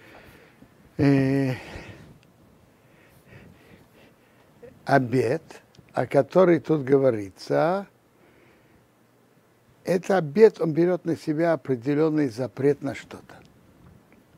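An elderly man speaks calmly and closely into a microphone, with pauses.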